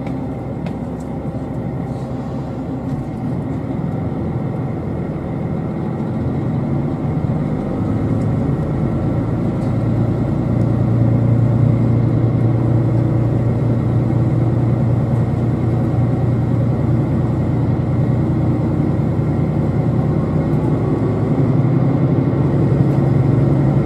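A passing freight train clatters close by.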